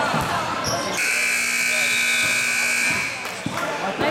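A referee's whistle blows one long, steady blast.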